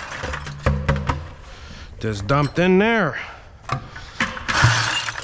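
A plastic bucket knocks against a concrete floor.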